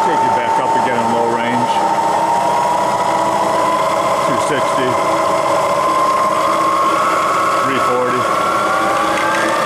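A machine motor whines steadily, its pitch slowly rising.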